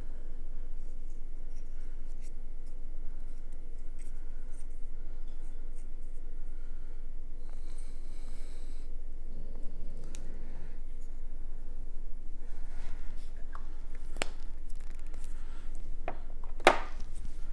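Small plastic parts click and tap softly close by.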